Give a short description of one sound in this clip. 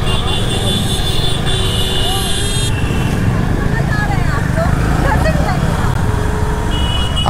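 Busy street traffic hums all around.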